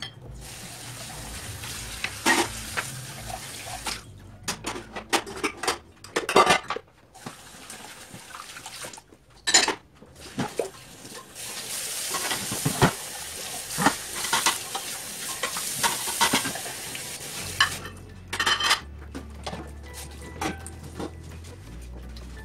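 Tap water runs into a sink.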